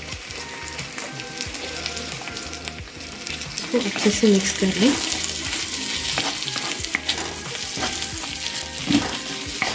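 Onion pieces sizzle in hot oil in a wok.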